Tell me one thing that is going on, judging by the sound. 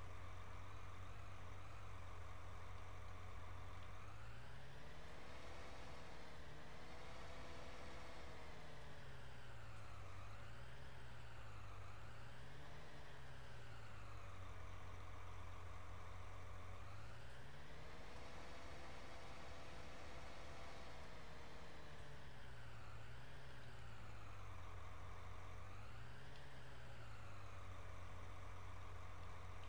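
A tractor engine rumbles steadily, revving up and down.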